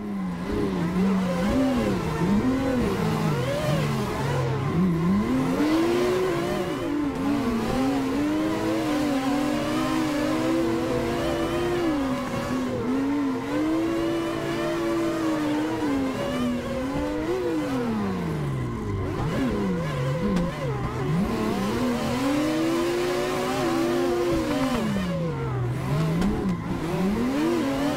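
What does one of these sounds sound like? Tyres squeal as cars drift through corners.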